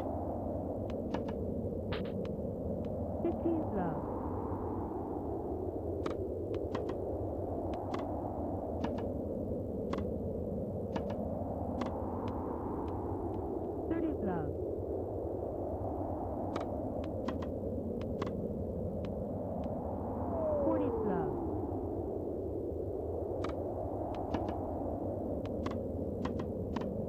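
Tennis balls are struck with sharp, regular pops.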